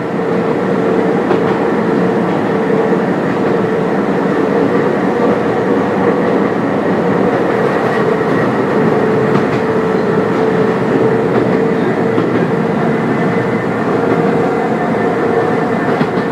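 A train rumbles steadily along the tracks with a low drone.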